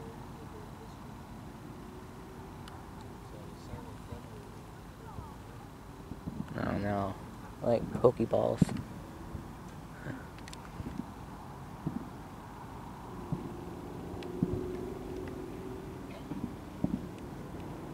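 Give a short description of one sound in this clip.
Fireworks pop and boom in the distance.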